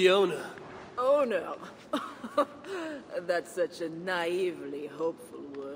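A woman answers calmly, close by.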